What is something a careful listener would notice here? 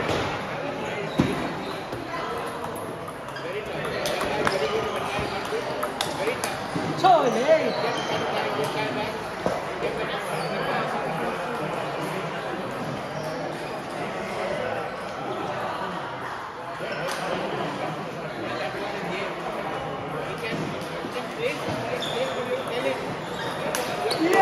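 Many people chatter in the background of a large, echoing hall.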